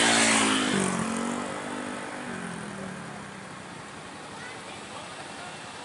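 A truck engine rumbles as the truck approaches.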